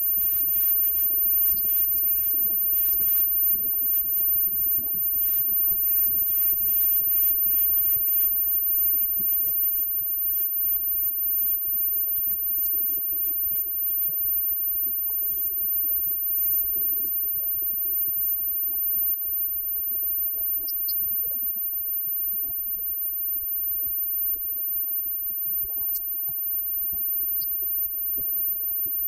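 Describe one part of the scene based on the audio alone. Electric guitars play loudly in a live rock band.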